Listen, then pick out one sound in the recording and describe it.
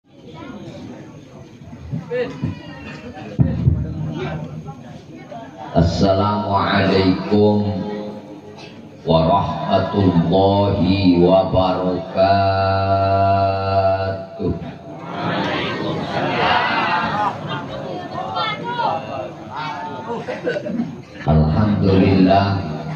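A man chants in a melodic, drawn-out voice through a microphone and loudspeakers.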